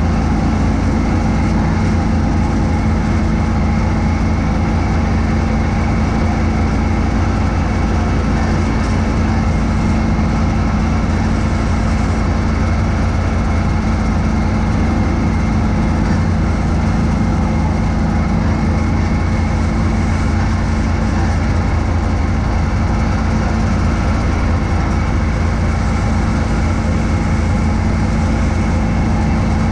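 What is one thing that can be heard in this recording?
A snowblower engine drones loudly and steadily up close.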